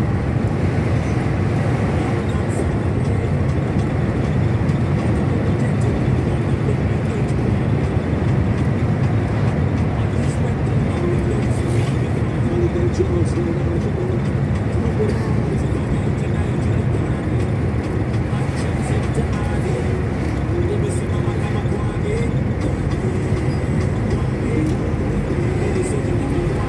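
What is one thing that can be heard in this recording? Tyres roll on a smooth road with a steady rumble.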